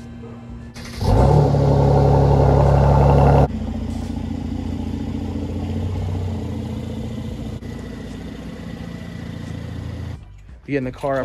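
A car engine rumbles low and steady as a car rolls slowly forward.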